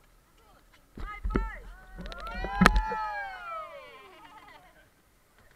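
A group of young men and women shout and cheer loudly outdoors.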